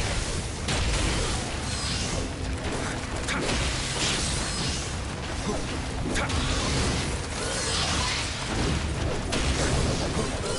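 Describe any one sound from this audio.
Fiery blasts burst and crackle.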